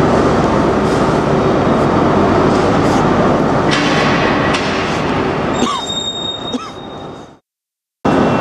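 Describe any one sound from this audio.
A train rolls slowly along a platform in a large echoing hall.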